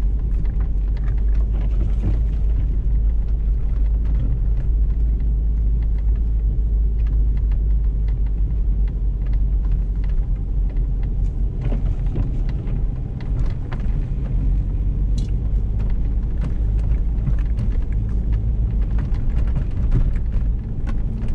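Tyres crunch and thump over snow with frequent knocks.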